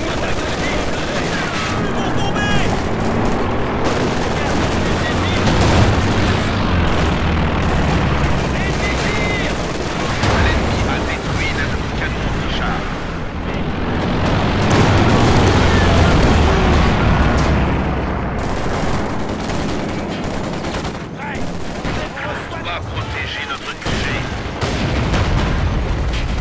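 Gunfire and explosions rumble across a battlefield.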